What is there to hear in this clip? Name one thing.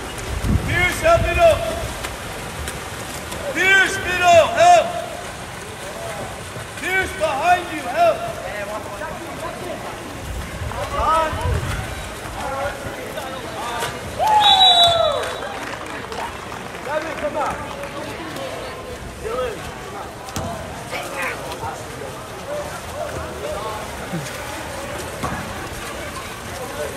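Players splash in the water.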